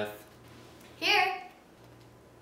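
A girl speaks brightly.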